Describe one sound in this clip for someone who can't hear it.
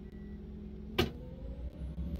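A bus door shuts with a sharp thud.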